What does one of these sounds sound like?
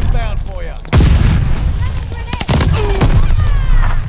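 A grenade explodes with a loud, deep boom.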